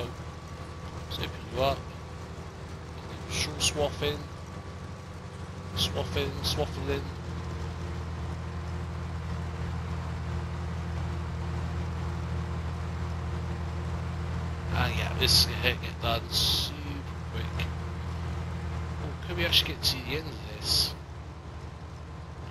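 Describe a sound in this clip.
A combine harvester cuts through standing grain with a rumbling whir.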